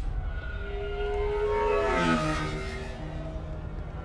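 A flying car whooshes past close by, its engine whine dropping in pitch as it goes.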